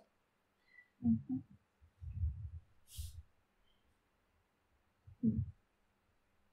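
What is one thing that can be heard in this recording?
A young woman laughs softly over an online call.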